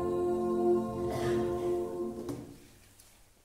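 A choir and band end a song on a long held chord.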